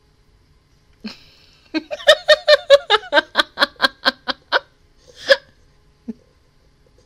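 A young woman laughs loudly and heartily into a close microphone.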